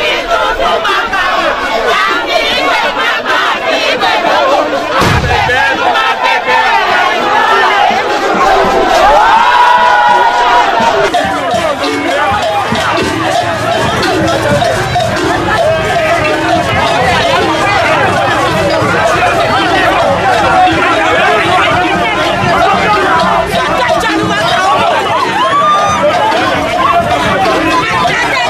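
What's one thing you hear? A large outdoor crowd chatters and calls out loudly all around.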